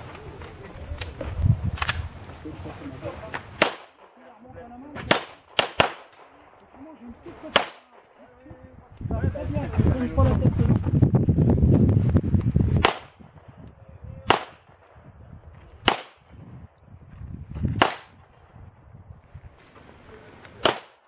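Pistol shots crack loudly outdoors, one at a time.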